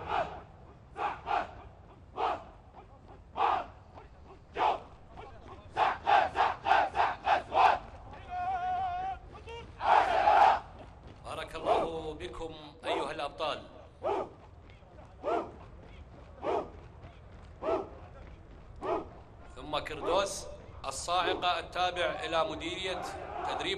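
A group of men shout a marching chant in unison, outdoors.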